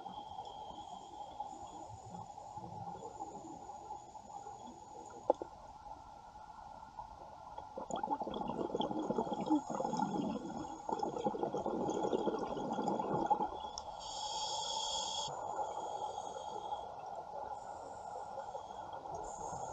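Air bubbles from a diver's breathing gear gurgle and rumble underwater.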